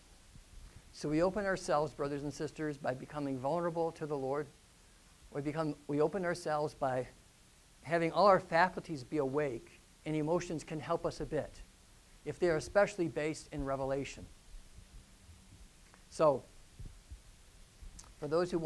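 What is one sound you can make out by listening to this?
A man speaks calmly and with animation through a lapel microphone.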